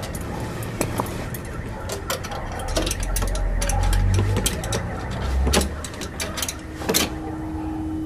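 Metal clicks and rattles as a key works in a door lock.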